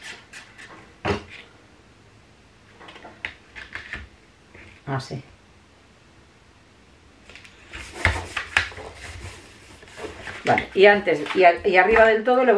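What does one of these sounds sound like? Sheets of paper rustle and slide against each other.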